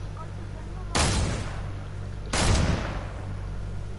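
A sniper rifle fires twice.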